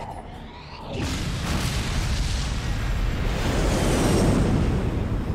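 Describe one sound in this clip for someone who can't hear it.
An explosion roars.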